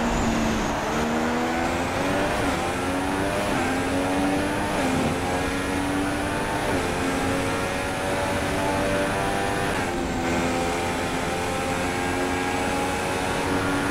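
A Formula One car's engine screams at full throttle and shifts up through the gears.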